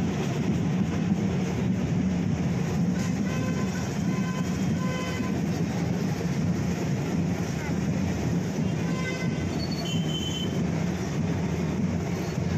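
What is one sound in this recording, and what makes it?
Tractor engines rumble steadily nearby.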